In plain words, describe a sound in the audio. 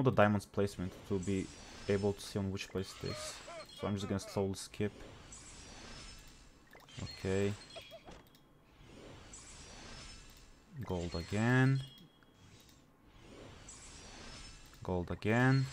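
A shimmering magical whoosh swells and fades, again and again.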